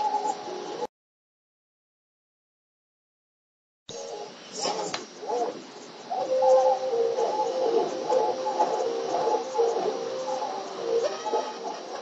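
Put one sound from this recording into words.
Electronic video game music plays.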